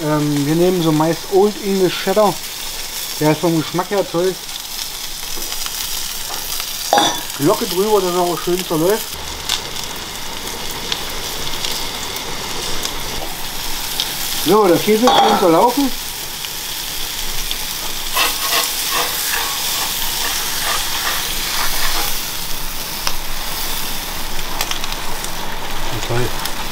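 Food sizzles steadily on a hot grill.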